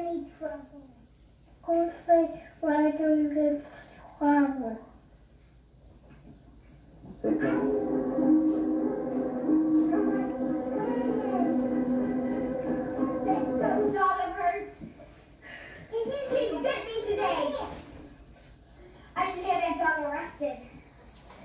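A young child talks calmly, heard through a loudspeaker.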